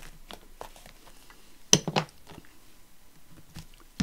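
A hand roller is set down on a table with a knock.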